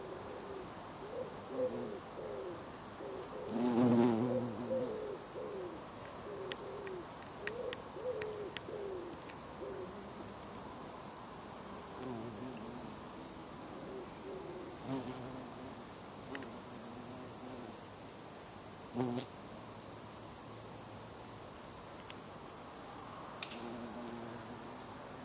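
A bumblebee buzzes close by, coming and going.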